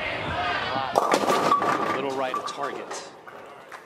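A bowling ball crashes into wooden pins, which clatter as they scatter.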